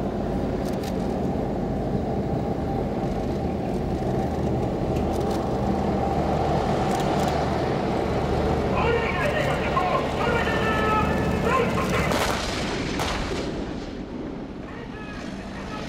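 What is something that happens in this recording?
A tank engine roars and its tracks clatter as it drives through mud.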